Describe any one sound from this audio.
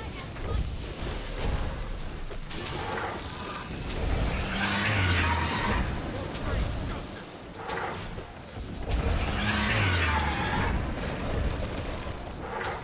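Spell blasts and weapon impacts crash repeatedly in a fantasy battle.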